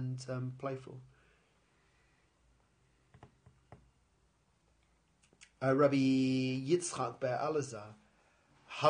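A middle-aged man speaks close by in a low, calm voice.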